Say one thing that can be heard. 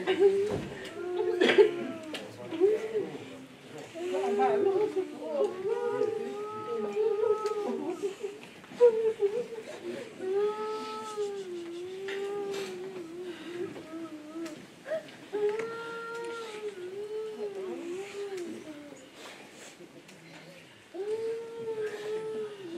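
A group of voices sings a slow, mournful hymn.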